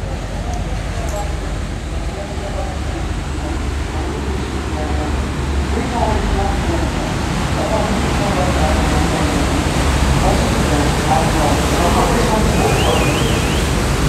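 A tour boat's engine rumbles as the boat passes close by.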